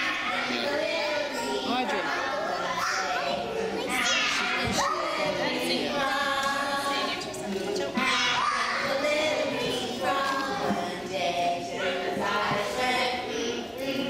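Young children sing together in an echoing room.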